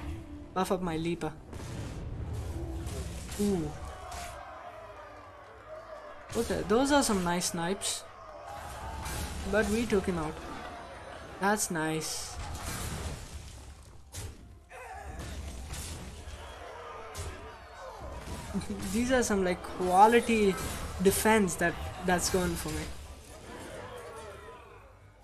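Game pieces clash with sharp magical impacts and chimes.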